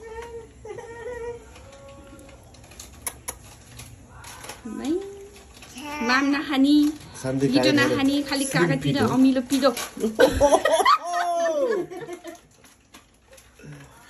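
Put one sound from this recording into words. A toddler giggles.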